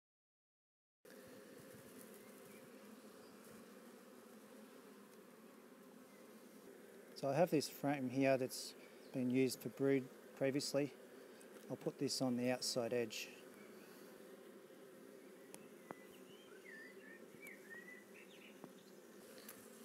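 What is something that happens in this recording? Honeybees hum around an open hive.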